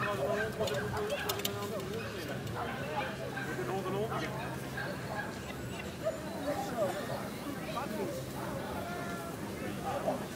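A woman calls out commands to a dog.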